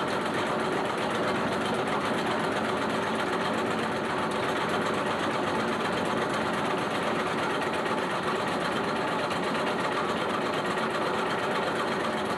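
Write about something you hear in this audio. Grain hisses and rattles along a shaking metal trough.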